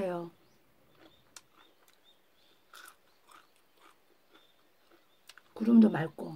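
An elderly woman chews crunchy food.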